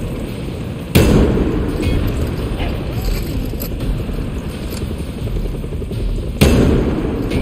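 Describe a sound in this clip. A rocket launcher fires with a loud blast.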